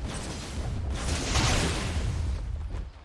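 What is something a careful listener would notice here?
A lightning bolt strikes with a sharp crack.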